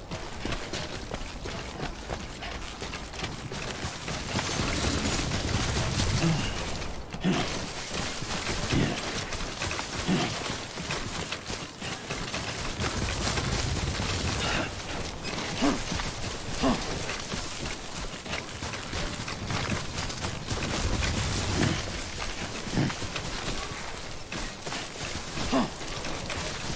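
Footsteps thud on grassy, rocky ground.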